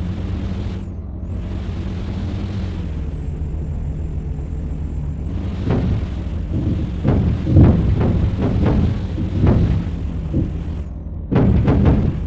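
A diesel truck engine drones while cruising.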